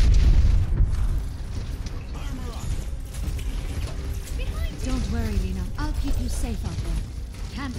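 A heavy gun fires in rapid bursts with deep booms.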